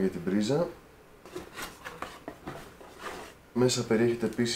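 Cardboard and plastic packaging rustle as hands unpack items.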